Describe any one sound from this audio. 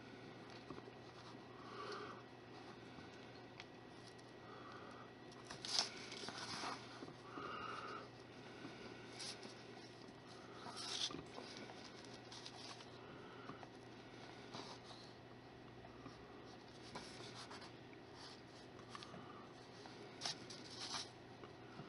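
Fingers softly press and rub modelling clay.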